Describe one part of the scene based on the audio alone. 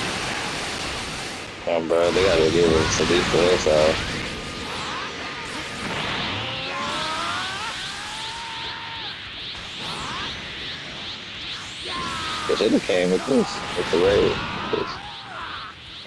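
Energy blasts roar and crackle.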